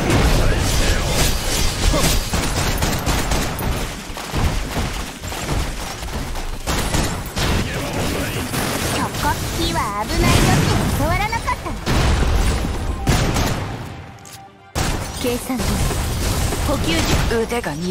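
Energy blasts boom and crackle.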